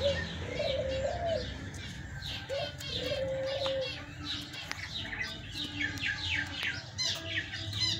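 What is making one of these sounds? Hens croon and cluck softly close by.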